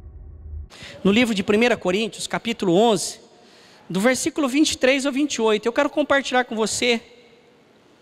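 A man speaks with animation through a microphone in a slightly echoing room.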